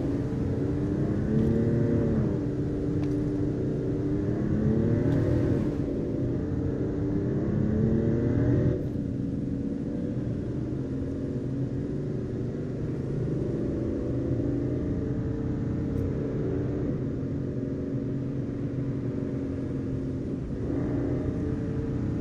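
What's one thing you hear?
A car engine hums steadily, rising and falling in pitch as it speeds along.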